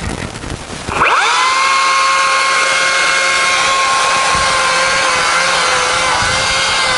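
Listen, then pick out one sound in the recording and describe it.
A chainsaw revs up sharply and then whines steadily as it cuts into wood.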